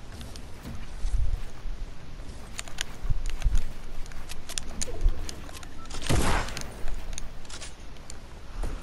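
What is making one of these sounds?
Game building pieces snap into place with quick, sharp clacks.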